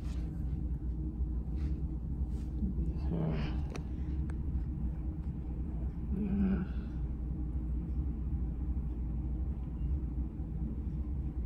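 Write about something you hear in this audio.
Scissors snip hair.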